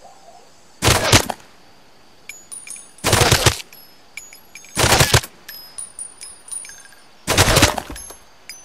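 A heavy gun fires loud booming blasts, each with a long rumbling echo.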